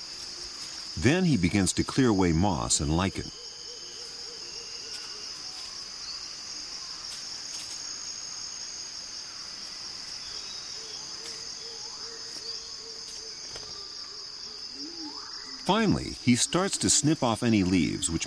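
A bird gives loud, harsh, rasping calls in bursts nearby.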